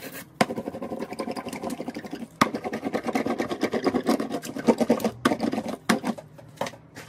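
A stiff brush dabs and scrubs rapidly against a hard surface.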